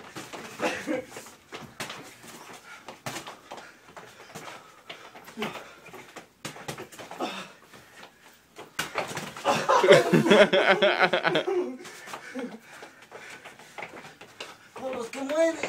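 Young men shout and laugh loudly nearby.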